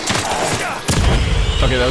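A gunshot blasts and echoes.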